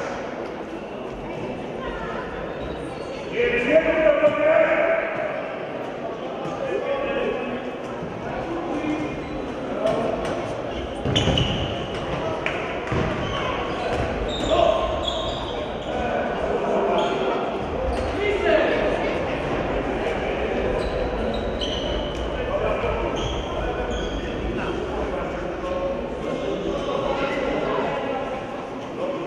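Sneakers squeak on a hard court floor in a large echoing hall.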